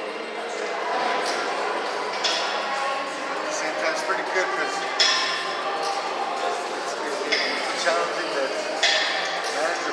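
Iron weight plates on a shoulder press machine clank as the lever arms move.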